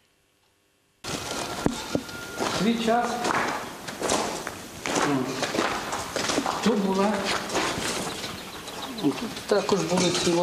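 An elderly man talks in an echoing room.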